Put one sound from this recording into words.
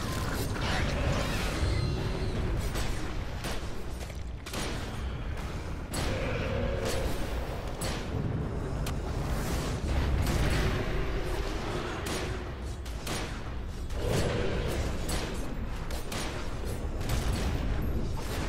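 Magic blasts crack and boom in quick bursts.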